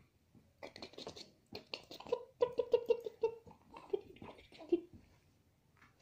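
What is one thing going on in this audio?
A woman talks playfully and affectionately to a baby close by.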